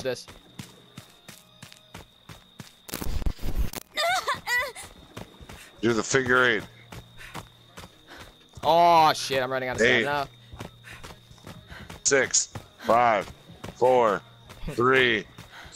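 Quick footsteps run over soft ground.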